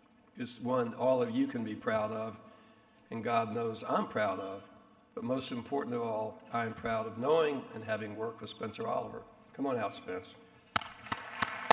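An older man speaks calmly into a microphone in a large echoing room.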